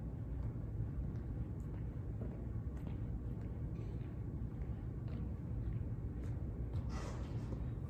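Footsteps fall softly on a hard floor.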